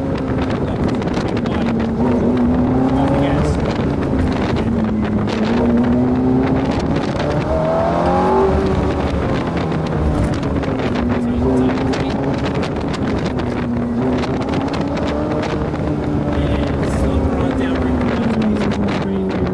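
A sports car engine roars steadily, rising and falling in pitch as the car accelerates and slows.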